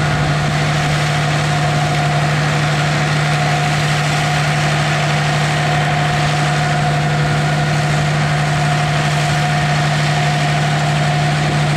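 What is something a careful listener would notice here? A tractor engine drones steadily and loudly close by.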